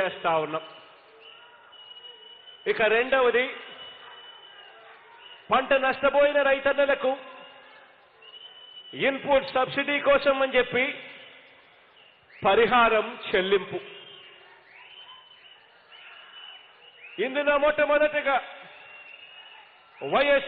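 A man speaks forcefully into a microphone over loudspeakers in short bursts, with pauses between, his voice echoing.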